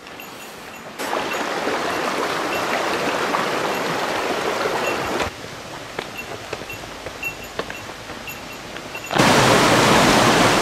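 Water rushes and splashes along a stream nearby.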